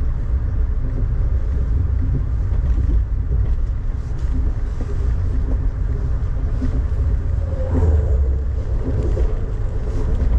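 Rain patters against a window.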